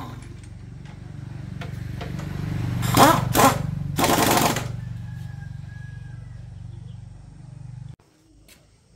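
A motorbike engine idles with a steady, low, pulsing rumble.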